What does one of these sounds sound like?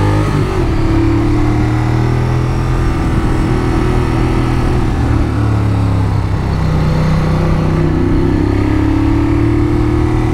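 A motorcycle engine hums steadily and changes pitch as it rides.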